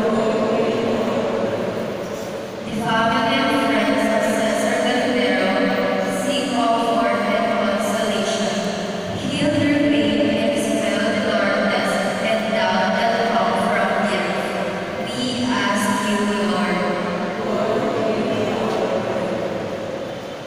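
A man sings along into a microphone, heard through loudspeakers.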